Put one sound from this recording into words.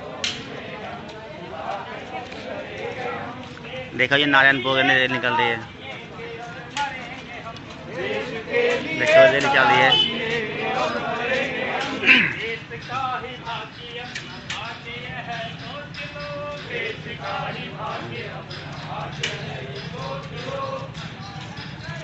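Many people march on a paved road, their footsteps shuffling.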